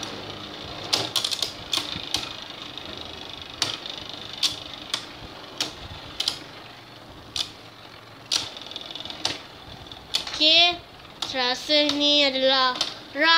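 Two spinning tops clack against each other again and again.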